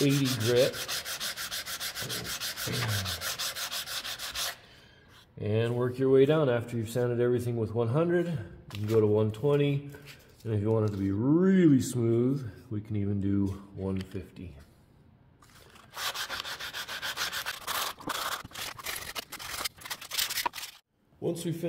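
Sandpaper rubs back and forth on wood in quick strokes.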